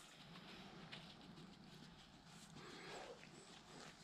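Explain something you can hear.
A dog sniffs at the grass.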